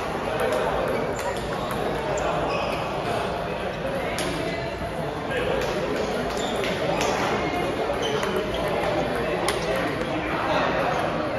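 A ping pong ball clicks back and forth off paddles and a table in an echoing hall.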